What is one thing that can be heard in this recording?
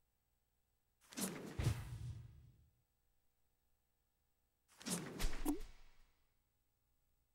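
A short whooshing sound effect plays twice.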